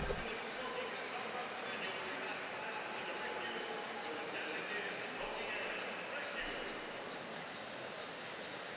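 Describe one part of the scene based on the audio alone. A large crowd chatters and murmurs steadily in a big echoing arena.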